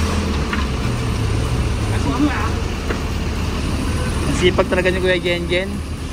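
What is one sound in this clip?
Wooden boards knock and clatter.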